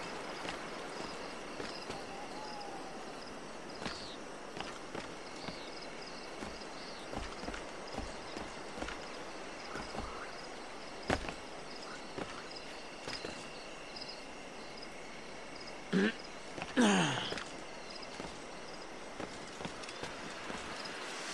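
Hands and feet knock and scrape on rock as a climber pulls upward.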